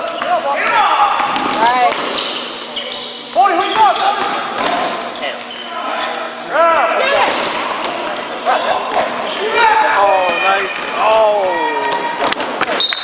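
Sneakers squeak sharply on a hardwood floor in an echoing gym.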